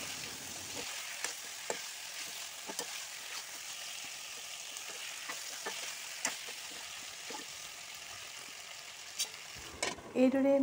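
A spoon scrapes and clinks against a metal pan.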